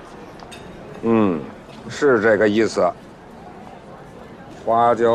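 An elderly man answers quietly.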